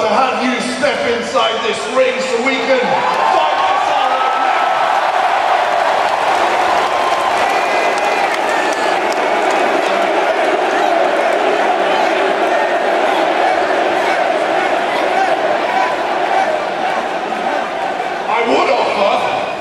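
A large crowd cheers and roars in a vast echoing arena.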